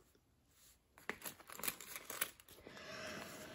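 A plastic pouch crinkles as hands handle it.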